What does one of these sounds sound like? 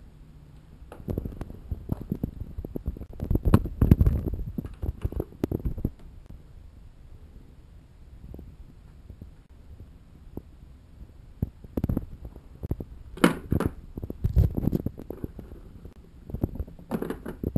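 A small plastic device with a cable rattles and rustles as it is handled up close.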